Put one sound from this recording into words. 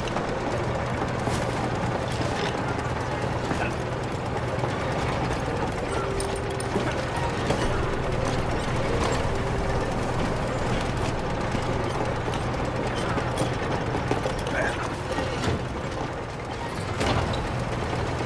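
Big saw blades whirr and machinery hums steadily.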